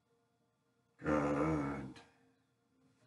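A man lets out a short, loud shout.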